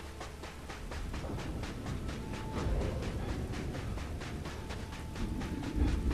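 Thunder rumbles low and deep, growing louder.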